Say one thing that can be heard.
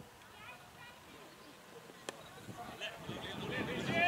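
A cricket ball knocks sharply against a bat.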